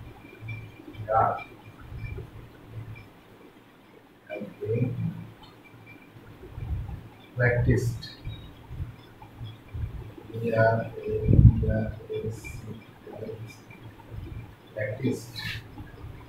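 A man speaks calmly, close by, as if teaching.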